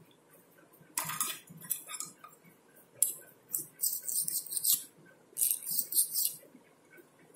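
Metal tweezers scrape and rasp against a small metal part.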